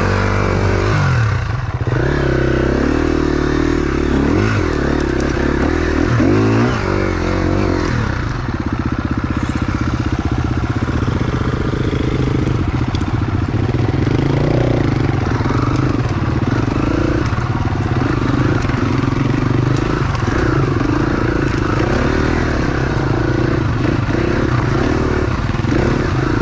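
A dirt bike engine revs and sputters up close, rising and falling in pitch.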